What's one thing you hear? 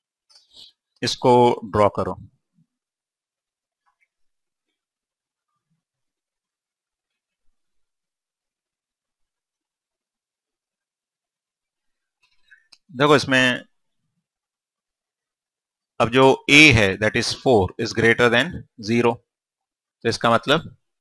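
A man speaks calmly through a clip-on microphone, in short bursts with pauses.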